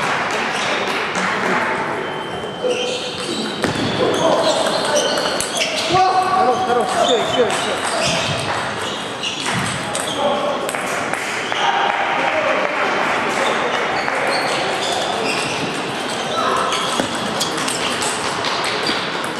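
A table tennis ball clicks against paddles and bounces on a table.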